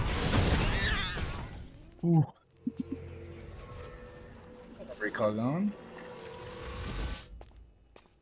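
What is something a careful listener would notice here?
Magical spell effects whoosh and crackle in a video game.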